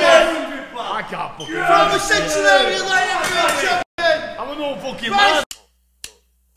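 An older man talks cheerfully close by.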